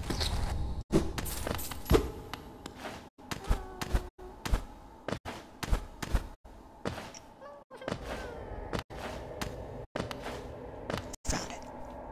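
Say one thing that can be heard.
A small game character lands with soft thuds and taps.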